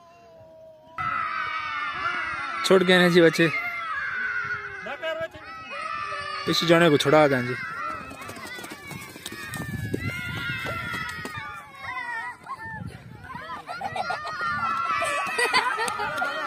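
Children shout and cheer excitedly outdoors.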